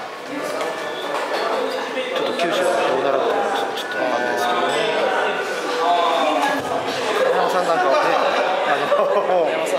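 A young man speaks calmly and close by, into a microphone.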